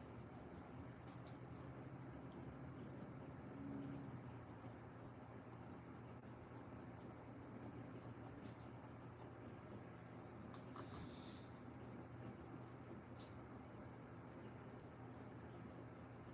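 A paintbrush dabs and scrapes softly on canvas.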